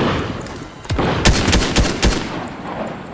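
Rifle shots crack in a quick burst.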